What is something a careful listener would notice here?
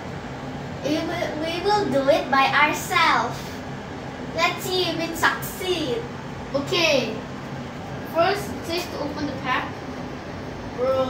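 A young boy talks excitedly, close by.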